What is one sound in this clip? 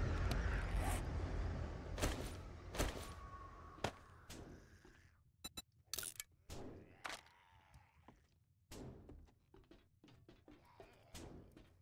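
Short game interface clicks sound as items are picked in a menu.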